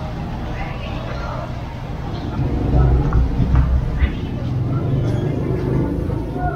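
People talk faintly in the distance along a street.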